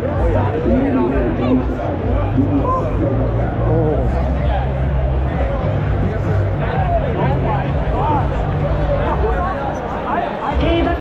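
A large stadium crowd roars and cheers loudly all around.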